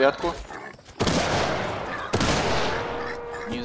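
A gun fires loud shots close by.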